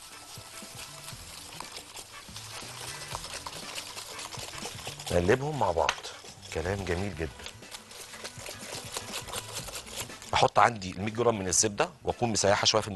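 A whisk clatters against a glass bowl.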